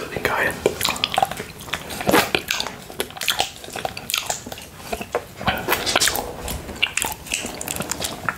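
A man licks and slurps on a hard candy.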